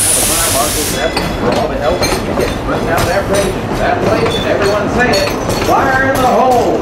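Train wheels clack over rail joints as carriages roll past.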